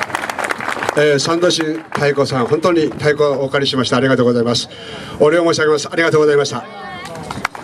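A man speaks into a microphone, heard outdoors through a loudspeaker.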